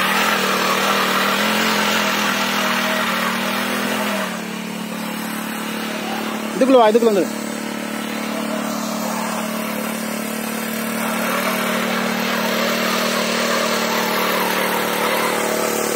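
A small tiller engine hums steadily as it churns soil.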